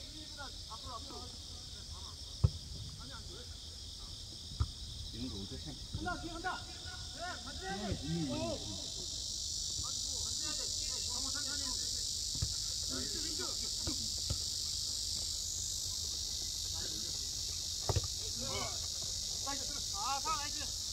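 Young players shout and call out across an open field.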